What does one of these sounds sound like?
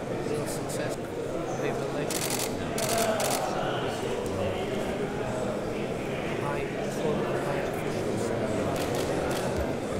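A second man answers in a low voice, close by.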